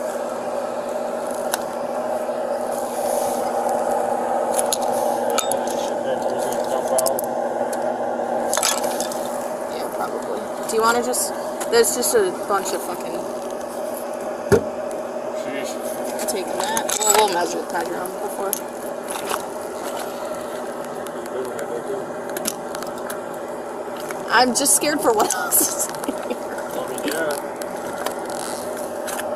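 Hands rummage through a bag, with things rustling and clattering.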